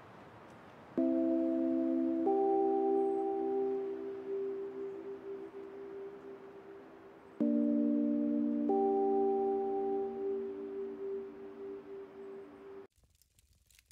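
Soft chiming music plays in slow, sustained chords.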